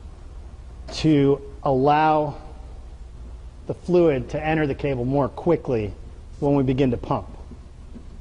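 A man speaks calmly to the listener.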